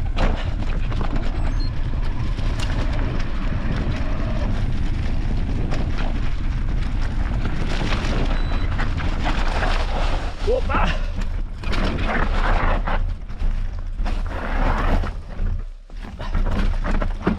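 Footsteps crunch on dry leaves and gravel along a trail.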